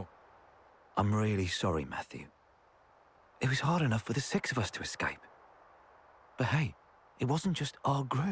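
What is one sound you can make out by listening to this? A second young man answers in a gentle, apologetic voice.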